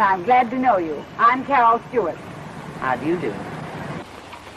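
A woman speaks softly up close.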